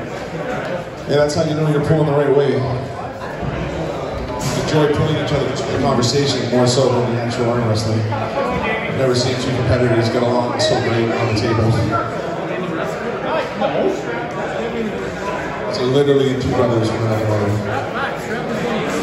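A man speaks loudly and firmly, giving instructions close by.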